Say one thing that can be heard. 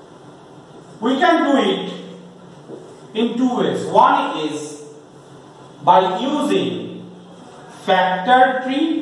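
A man speaks loudly and clearly in a slightly echoing room, in bursts with pauses.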